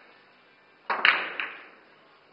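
A cue ball smashes into a rack of pool balls with a sharp crack.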